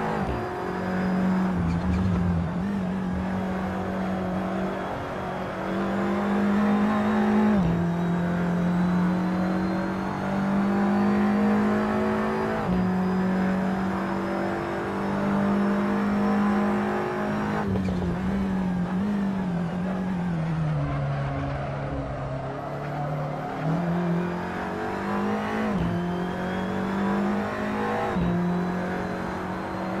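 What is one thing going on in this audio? A race car engine roars steadily, rising in pitch as it speeds up and dropping with each gear change.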